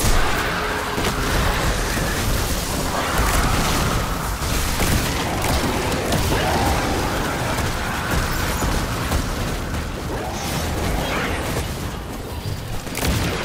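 Guns fire rapidly in a game.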